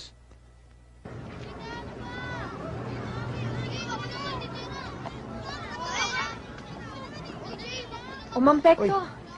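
A crowd chatters and cries out outdoors.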